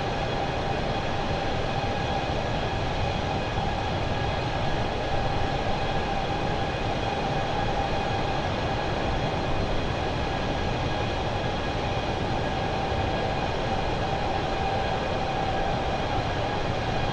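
Jet engines roar steadily with a constant whine.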